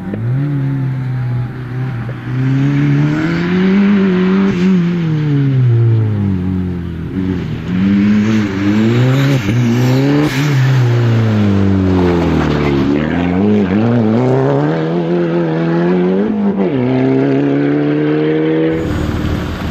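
A rally car engine revs hard, rising and falling through the gears.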